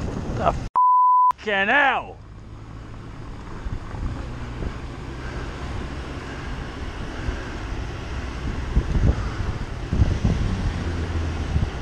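Wind rushes over a microphone while riding a bicycle.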